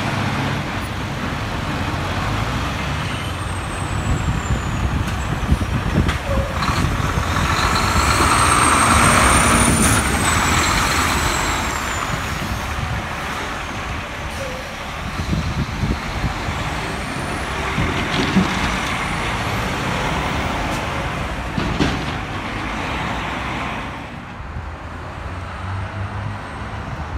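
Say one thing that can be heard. Heavy truck engines rumble in street traffic.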